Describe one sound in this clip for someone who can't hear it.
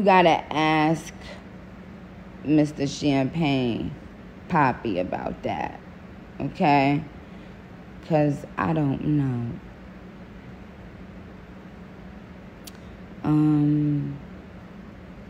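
A woman speaks calmly and close to a phone microphone, in short phrases with pauses.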